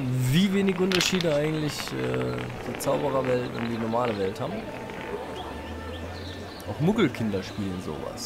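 A marble rolls over cobblestones with a faint rattle.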